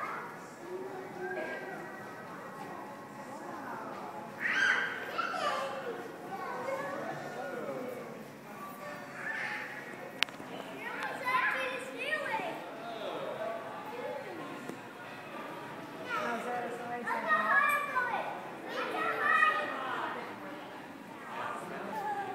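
Indistinct chatter echoes through a large indoor hall.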